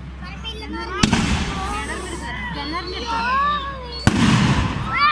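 Fireworks bang loudly outdoors, with a booming echo.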